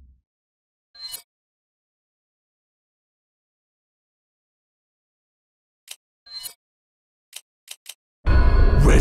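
Short electronic menu blips sound a few times.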